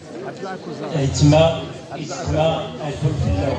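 An older man speaks calmly through a microphone.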